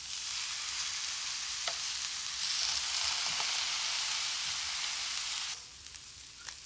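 Meat sizzles loudly in a hot pan.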